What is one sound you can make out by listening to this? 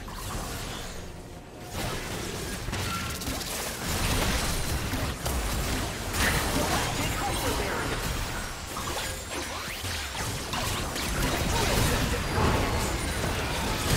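Game spell effects crackle and burst in a busy fight.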